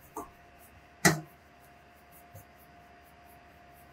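Flour pours with a soft rush into a pan.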